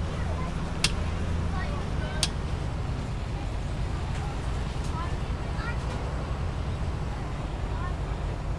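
A diesel school bus engine rumbles, heard from inside the cab.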